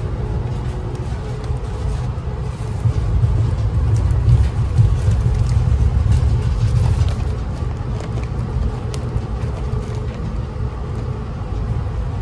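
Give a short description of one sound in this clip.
Plastic wrapping crinkles and rustles close by.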